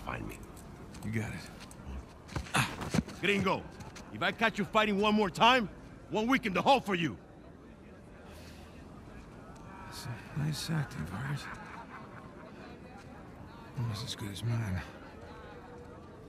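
A young man speaks calmly and wryly.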